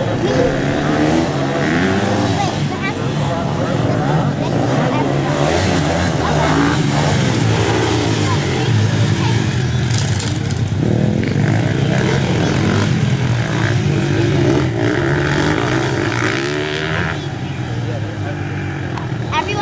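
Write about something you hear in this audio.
Dirt bike engines rev and whine as the bikes race around a track.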